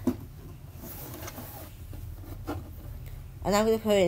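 Hands handle a hard plastic object with soft knocks and scrapes.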